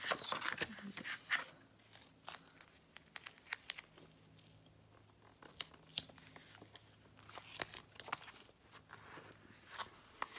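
Plastic sheets rustle and crinkle as hands handle them.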